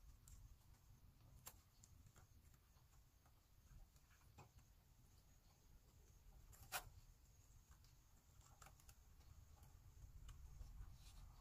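Hands tap and rustle against a wall.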